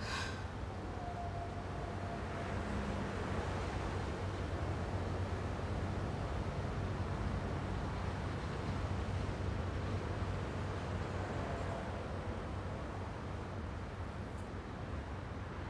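Wind rushes past an open car window.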